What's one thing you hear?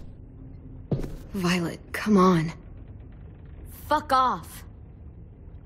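A young girl speaks softly and sadly.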